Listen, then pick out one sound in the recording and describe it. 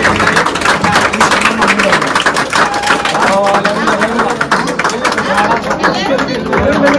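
A crowd of men and women sings loudly together.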